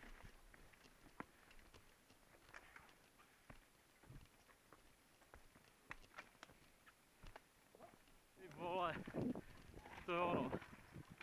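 Mountain bikes rattle and clatter over rocks and roots.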